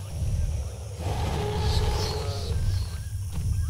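A large dinosaur roars.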